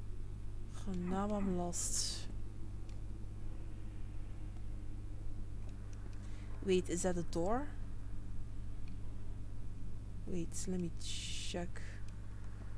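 A young woman speaks calmly into a microphone in short bursts.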